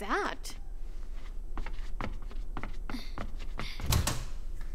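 Footsteps tap across a hard floor.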